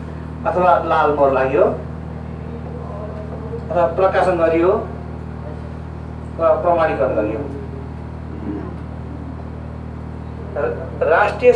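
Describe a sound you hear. A man speaks in bursts through a headset microphone.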